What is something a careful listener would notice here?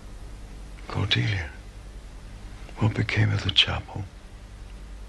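An elderly man speaks weakly and slowly nearby.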